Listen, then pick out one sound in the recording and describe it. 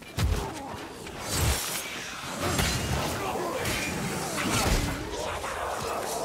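A heavy blade swings and strikes with dull thuds.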